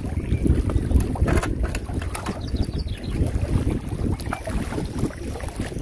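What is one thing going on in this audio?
Water laps gently at a shore outdoors.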